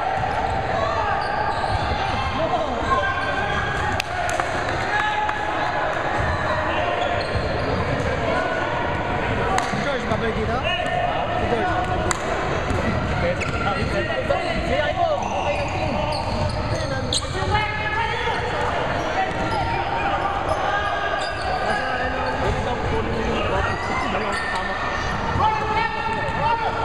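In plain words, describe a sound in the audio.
Men shout and call out to each other from across the court.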